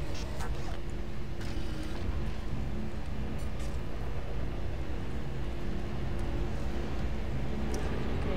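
Footsteps clank on a metal floor.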